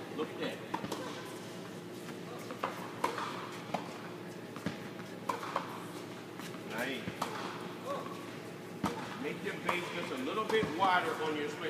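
Tennis balls are hit with rackets in a large echoing indoor hall.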